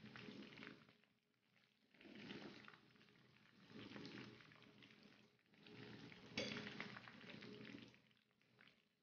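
Eggs sizzle and crackle in hot oil in a pan.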